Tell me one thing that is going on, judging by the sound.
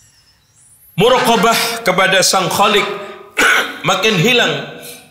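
A man speaks loudly and with feeling into a microphone.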